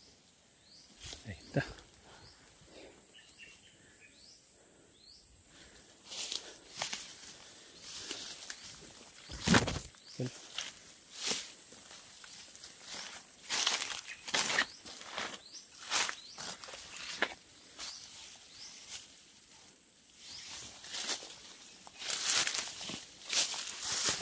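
Leaves and grass rustle as someone pushes through dense undergrowth.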